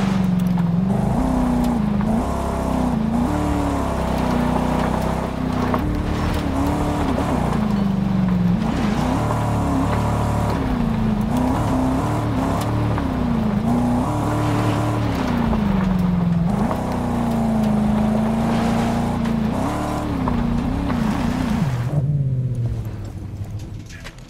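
A buggy engine revs and whines, rising and falling in pitch as it speeds along.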